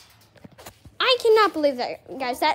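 A young boy talks excitedly, close by.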